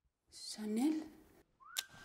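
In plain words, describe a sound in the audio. A woman speaks briefly into a phone.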